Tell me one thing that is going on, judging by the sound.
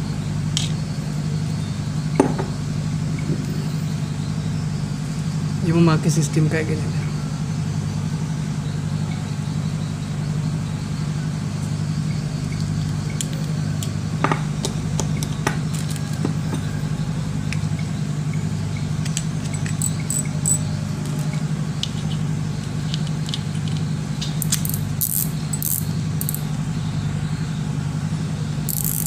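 Small metal and plastic parts of a fishing reel click and clatter in someone's hands.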